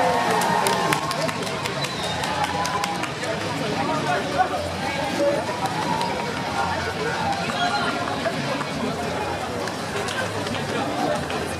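Many runners' footsteps patter on paving stones.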